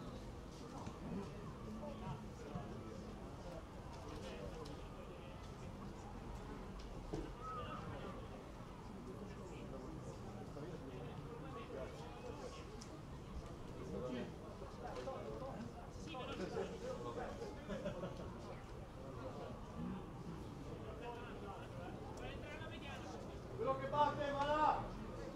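Spectators murmur and chat nearby, outdoors in open air.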